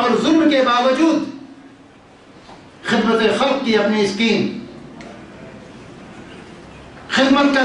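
A man speaks earnestly into a microphone, with pauses between phrases.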